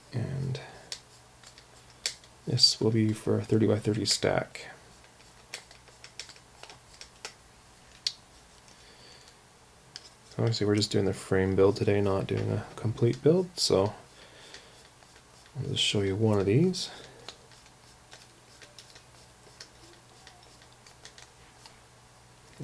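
A small screwdriver clicks softly as it turns a screw.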